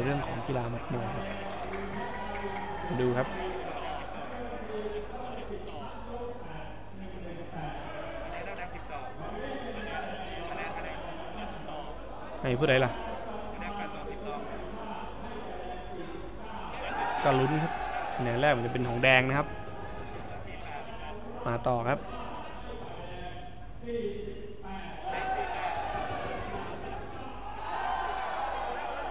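A middle-aged man announces over a loudspeaker in a large echoing hall.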